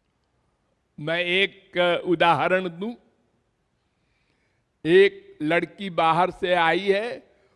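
An elderly man speaks with animation into a microphone, close by.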